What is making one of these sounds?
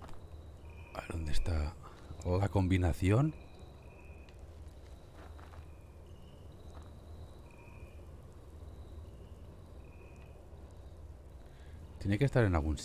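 A man talks into a close microphone in short bursts.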